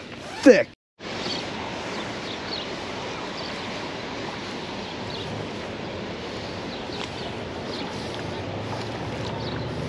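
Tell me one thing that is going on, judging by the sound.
Wind blows steadily outdoors by the water.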